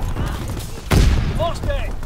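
An explosion booms up close.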